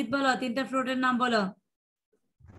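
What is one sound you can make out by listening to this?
A girl sings through an online call.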